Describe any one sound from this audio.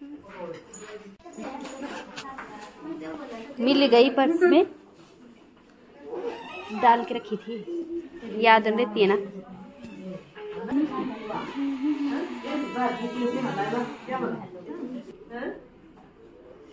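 Several women talk and chatter in a room.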